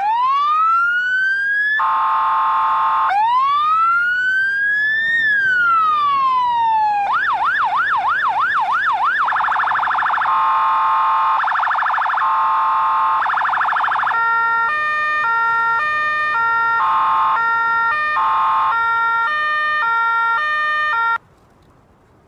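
A fire engine's siren sounds close by, cycling through a rising and falling wail, a fast yelp and alternating two-tone calls.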